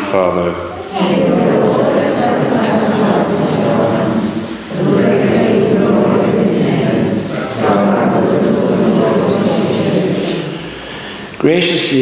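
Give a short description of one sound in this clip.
A congregation of men and women recites prayers together.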